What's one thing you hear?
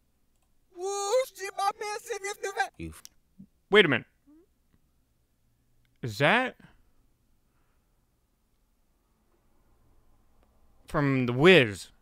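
A man speaks close to a microphone in short, expressive bursts, rising and falling in pitch.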